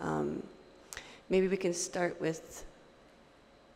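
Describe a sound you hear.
A woman speaks calmly in short phrases through a microphone.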